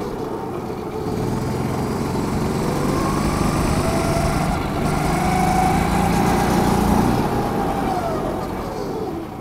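A kart engine buzzes loudly up close, revving up and down through the turns.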